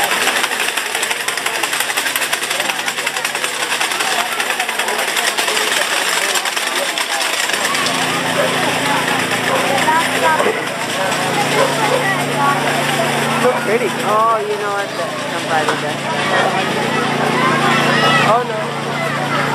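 A crowd murmurs and chatters outdoors at night.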